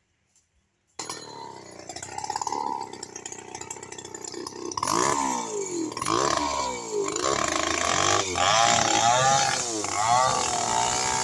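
A chainsaw engine roars and revs while cutting through wood.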